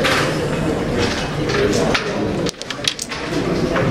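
A carrom striker flicks across a wooden board and clacks against the pieces.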